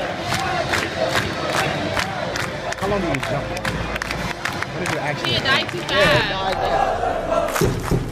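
A stadium crowd claps in rhythm.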